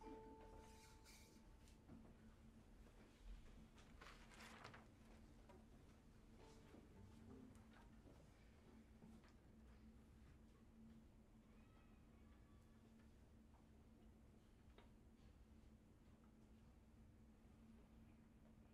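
A small ensemble plays soft, sparse music in a hall.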